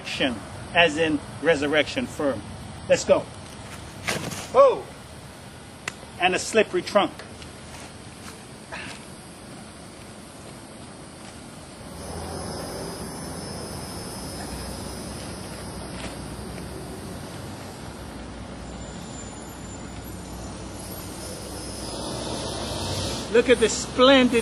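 A middle-aged man speaks calmly close by, outdoors.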